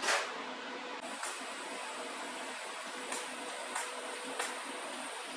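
An electric welder crackles and hisses.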